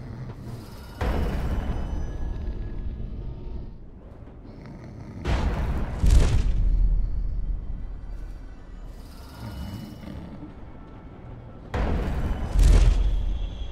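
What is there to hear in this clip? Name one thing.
A rushing magical whoosh sweeps past in sudden bursts.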